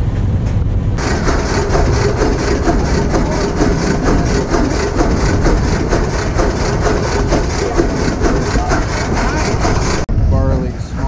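An old engine chugs and clatters steadily nearby.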